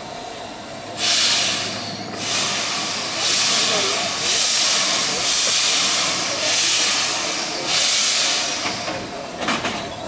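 A steam locomotive puffs out bursts of steam in loud hissing chugs.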